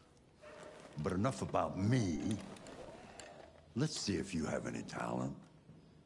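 An elderly man speaks with animation, up close.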